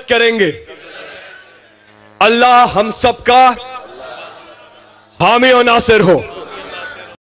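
A large crowd chants loudly in unison, in repeated bursts.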